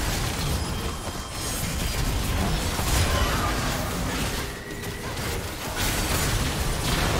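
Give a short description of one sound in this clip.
Game spell effects and blows crackle and clash in a busy battle.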